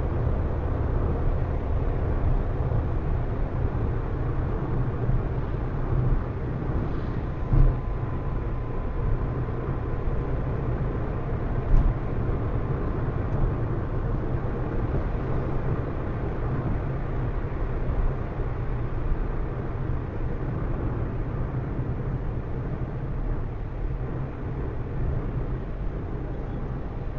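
Tyres roll with a steady rumble on the road surface.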